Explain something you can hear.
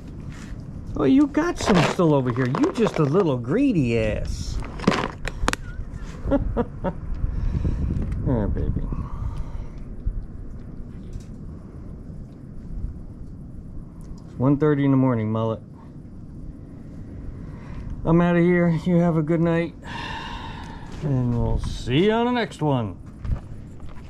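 A man talks softly and gently close by.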